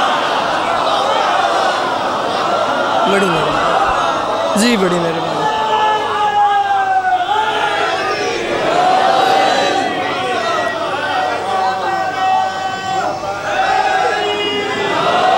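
A man leads the chanting loudly through a loudspeaker.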